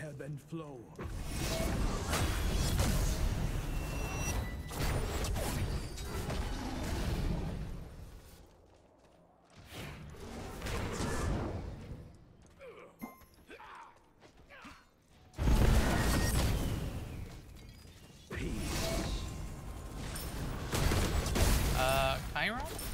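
Magic blasts crackle and burst in a fight.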